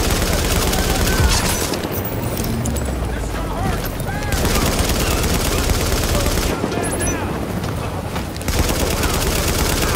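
An explosion booms and roars.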